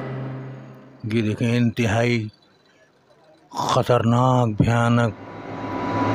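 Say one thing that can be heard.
A talking doll speaks in a gruff, menacing male voice through a small loudspeaker.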